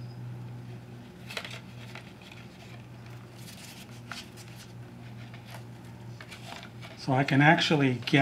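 A small wooden box rattles and taps in a man's hands.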